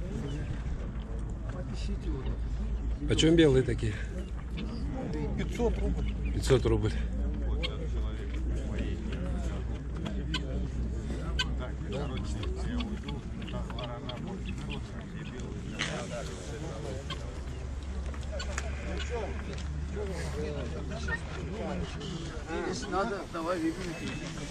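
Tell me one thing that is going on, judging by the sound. Men talk nearby outdoors, in a calm, conversational way.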